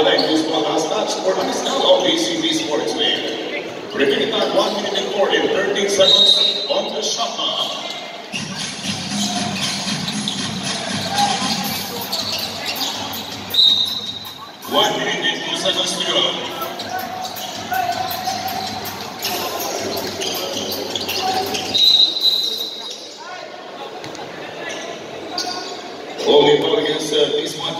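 A crowd in a large echoing gym cheers and chatters.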